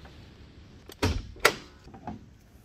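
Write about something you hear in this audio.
A car's hood latch pops open.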